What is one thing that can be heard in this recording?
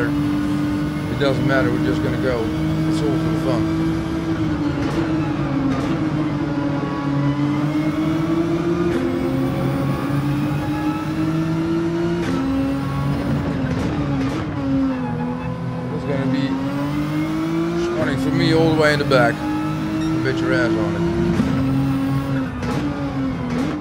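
A racing car engine roars steadily, its pitch rising and dropping with each gear change.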